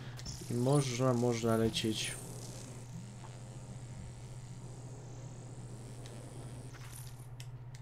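Energy blasts crackle and whoosh.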